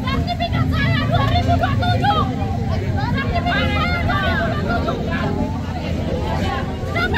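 A crowd of men and women talk and call out all around, outdoors.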